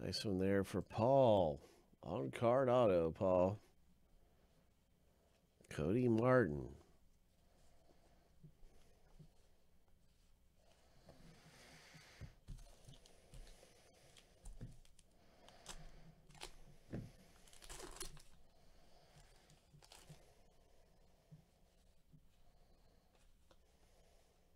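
Cards slide and rustle against each other.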